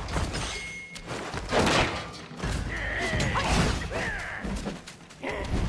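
Staffs swing and strike with sharp whooshes and thuds.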